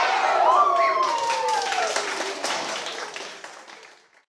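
A group of children claps hands.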